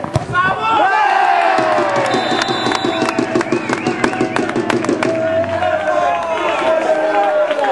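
Spectators cheer and shout outdoors after a goal.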